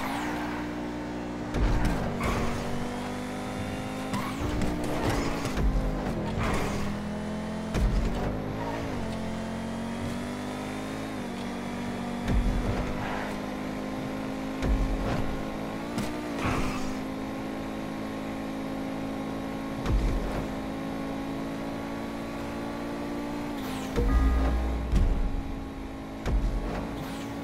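A sports car engine roars steadily, its pitch rising and falling as it shifts gears.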